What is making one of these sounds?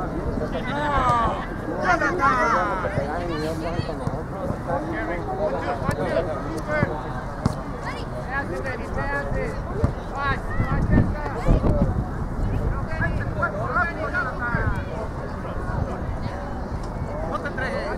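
Young players shout to each other across the field.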